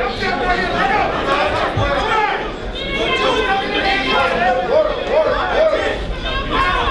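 A crowd of men and women shout and cheer loudly in a large echoing hall.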